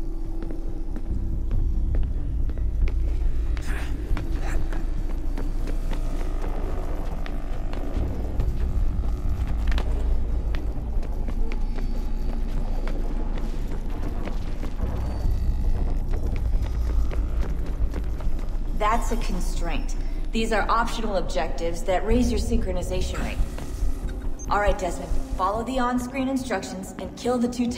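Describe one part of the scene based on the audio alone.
Quick footsteps patter as a runner sprints and leaps.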